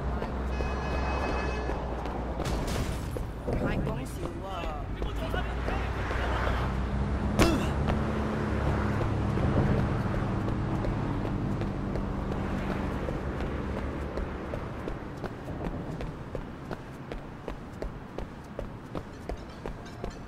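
Footsteps run quickly on a hard wet street.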